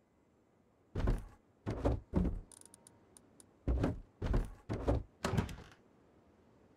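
Heavy footsteps thud on metal stairs.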